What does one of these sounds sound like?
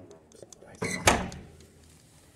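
A door thuds shut.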